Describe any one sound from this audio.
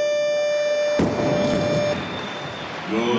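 A heavy barbell crashes onto a platform.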